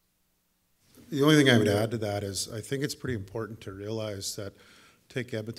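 An older man speaks calmly into a microphone, heard through a loudspeaker.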